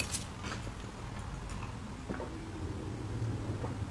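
A young woman sips and gulps a drink close to the microphone.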